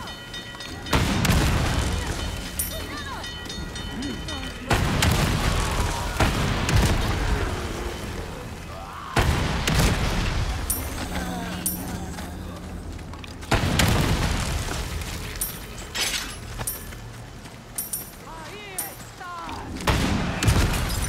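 A shotgun fires loud booming blasts, a few seconds apart.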